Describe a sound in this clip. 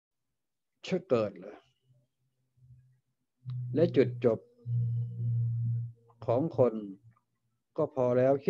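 An elderly man speaks slowly into a close microphone.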